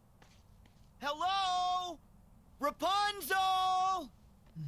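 A young man calls out loudly, drawing out his words.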